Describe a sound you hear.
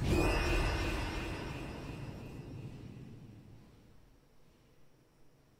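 A loud electronic blast rings out and slowly fades away.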